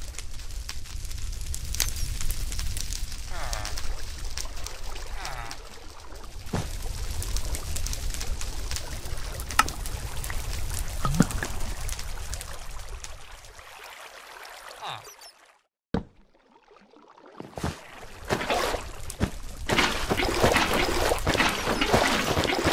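Fire crackles.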